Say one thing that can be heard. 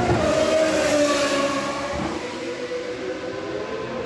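A racing car engine screams loudly as it speeds past, its pitch dropping away.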